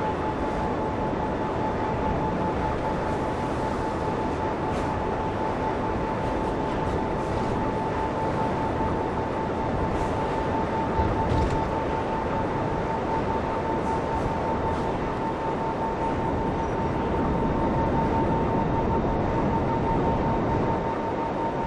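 A jet engine roars with a steady high whine.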